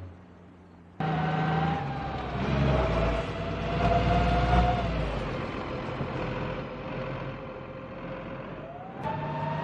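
A bus engine drones and whines steadily.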